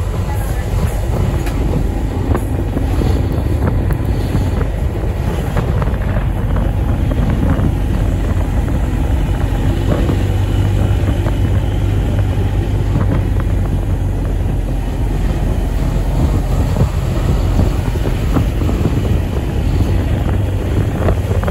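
A car's engine hums steadily as the car drives.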